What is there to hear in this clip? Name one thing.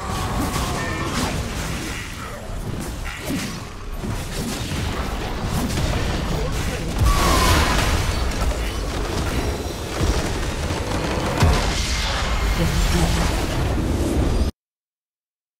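Spell effects and weapon hits from a video game battle crackle, boom and clash.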